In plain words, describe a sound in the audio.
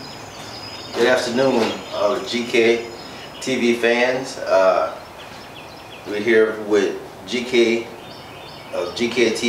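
A middle-aged man talks calmly and clearly nearby.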